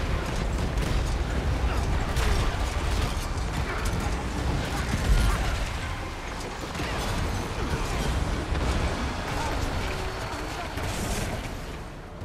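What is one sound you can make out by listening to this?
Magic spells crackle and boom in a fight.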